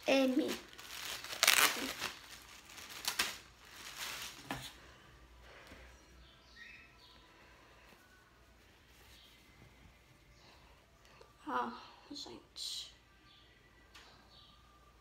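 Fabric rustles as a shirt is handled and shaken out.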